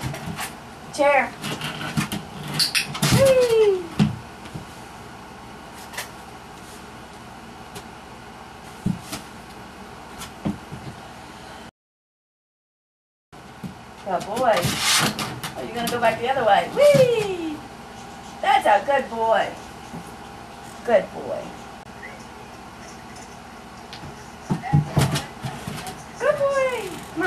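A puppy yips and barks excitedly.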